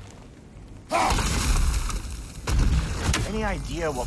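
An axe strikes wood with a heavy crash.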